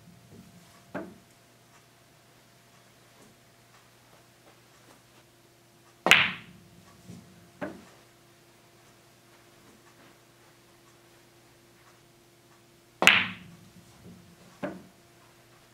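A rolling billiard ball clicks against another ball.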